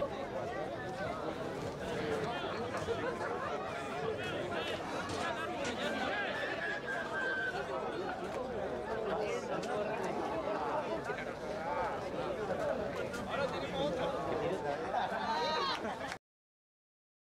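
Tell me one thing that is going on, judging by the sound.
Rugby players shout and call to each other outdoors.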